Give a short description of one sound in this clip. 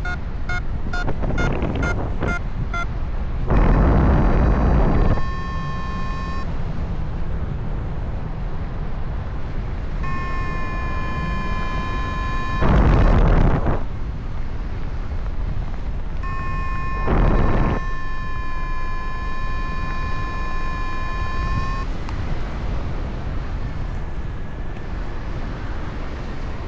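Wind rushes steadily past, with loud gusts now and then.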